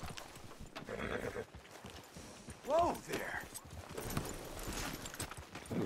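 Horse hooves clop on dirt.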